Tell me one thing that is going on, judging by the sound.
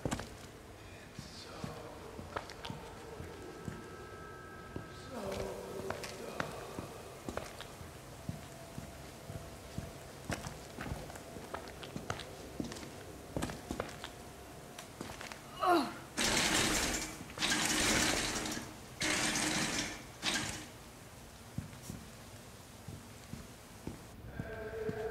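Footsteps crunch slowly over rubble and broken debris.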